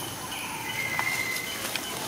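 Dry leaves rustle under a small monkey's steps.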